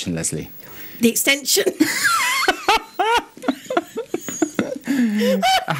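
A woman laughs loudly close to a microphone.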